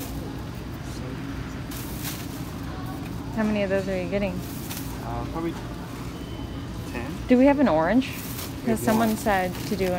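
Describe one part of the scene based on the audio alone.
A plastic bag rustles as fruit is dropped into it.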